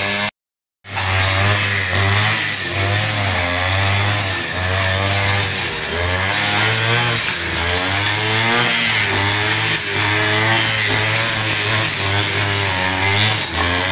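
A brush cutter engine whines steadily while cutting grass.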